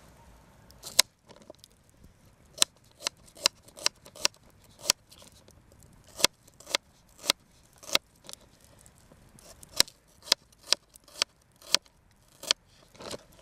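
A knife chops onion on a plastic cutting board.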